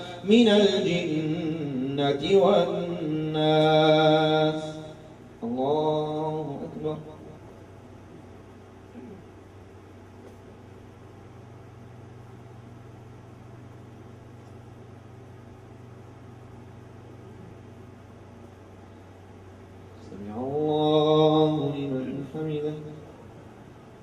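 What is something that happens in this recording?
A man chants aloud close by, his voice ringing through a loudspeaker in a room.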